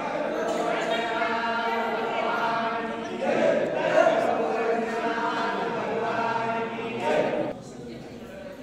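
A crowd of men and women chant a prayer loudly together nearby.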